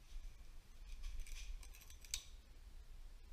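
A metal wrench clicks against a metal part.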